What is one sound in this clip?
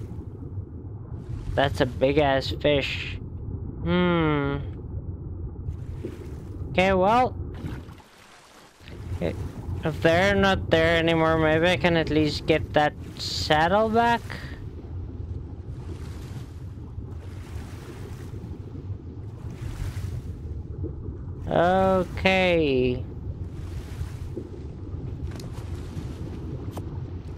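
Water rumbles softly and steadily underwater.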